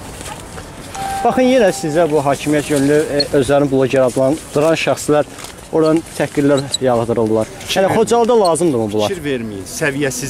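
A middle-aged man speaks calmly and clearly into microphones close by.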